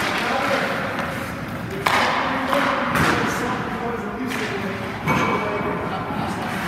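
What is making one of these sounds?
Hockey skates scrape on ice.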